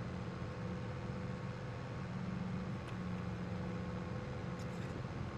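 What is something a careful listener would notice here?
A tractor engine rumbles steadily while driving.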